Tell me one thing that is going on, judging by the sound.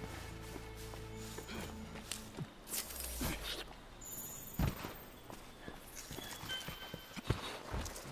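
Footsteps rustle through dense undergrowth.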